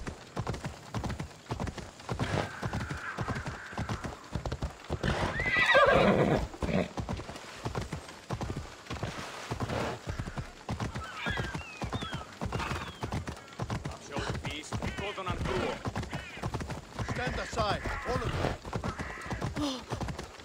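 Horse hooves clop quickly and steadily on stone paving.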